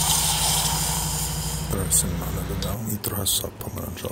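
Liquid pours into a metal mug.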